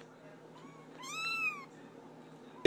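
A kitten mews in a high, thin voice.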